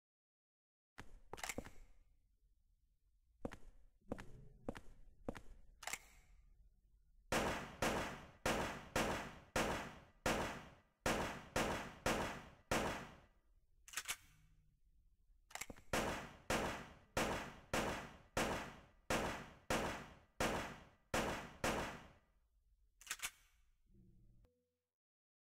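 Pistol shots ring out again and again in quick bursts, echoing briefly.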